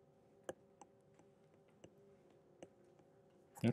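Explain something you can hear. A stylus taps softly on a tablet.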